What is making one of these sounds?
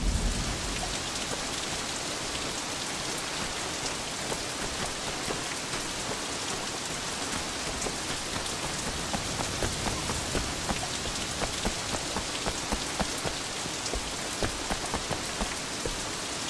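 Footsteps run and patter on the ground and stone steps.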